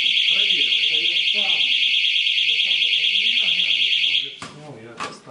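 A smoke alarm sounds a loud, shrill, rapid beeping nearby and then stops.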